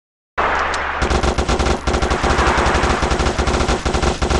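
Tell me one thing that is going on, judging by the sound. A machine gun fires rapidly.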